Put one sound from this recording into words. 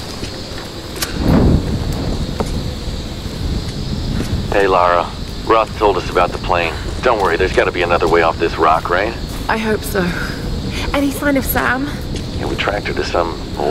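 A torch flares up and crackles.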